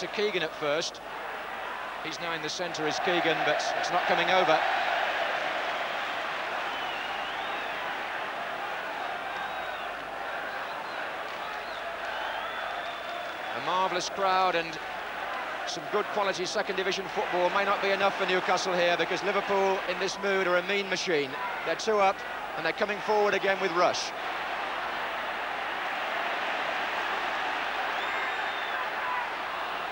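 A large crowd cheers and murmurs steadily in a big stadium, swelling at times.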